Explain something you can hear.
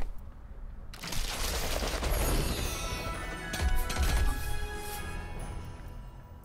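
A gift box bursts open with a bright, sparkling chime.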